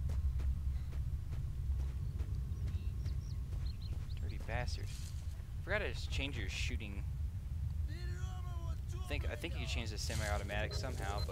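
Footsteps tread on grass at a walking pace.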